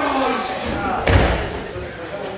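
A body thumps onto a floor mat.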